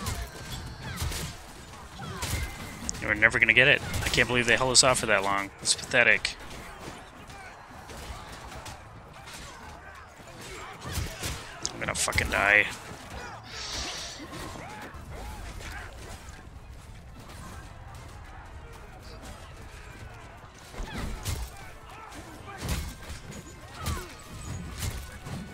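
Swords clash and clang in a noisy battle.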